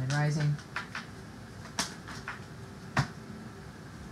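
Cards slap and flick softly as they are shuffled by hand.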